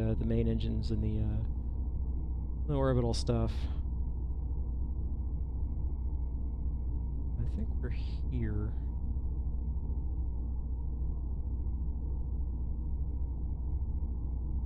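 A spacecraft engine hums low and steady.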